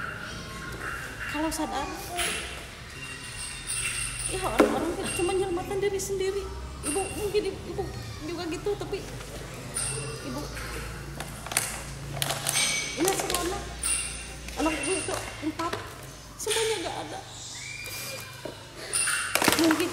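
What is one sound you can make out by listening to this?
A woman talks tearfully and sobs nearby.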